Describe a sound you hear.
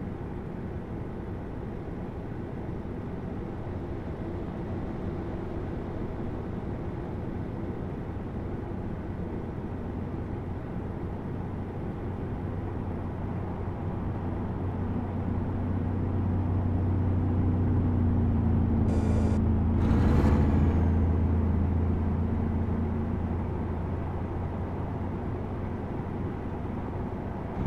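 A truck engine drones steadily from inside the cab.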